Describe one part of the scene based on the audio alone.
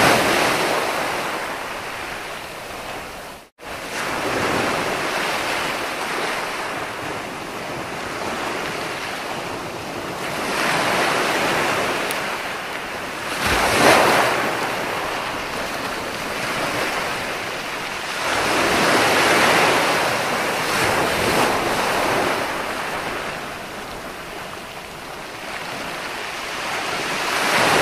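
Ocean waves break and wash onto the shore in surges that swell and fade.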